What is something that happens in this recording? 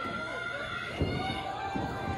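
A body slams onto a wrestling mat with a thud.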